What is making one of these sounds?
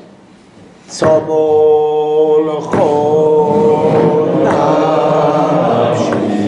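An elderly man sings a slow, drawn-out tune, close by.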